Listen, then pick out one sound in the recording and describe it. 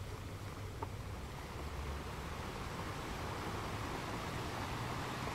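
Ocean waves break and rush over rocks with a steady roar.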